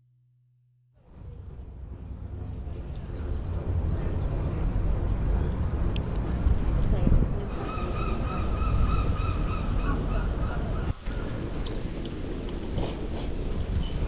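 The tyres of a folding bike roll over asphalt.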